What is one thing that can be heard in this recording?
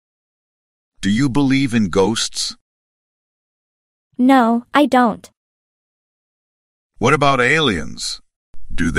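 A young man asks questions in a calm, clear voice.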